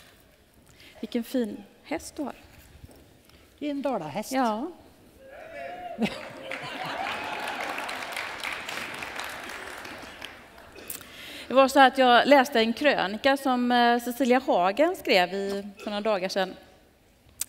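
A middle-aged woman speaks calmly through a microphone in a large hall.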